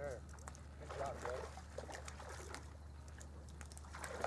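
A fish splashes at the surface of calm water.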